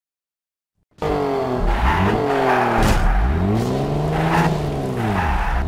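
A buggy engine roars and revs up and down.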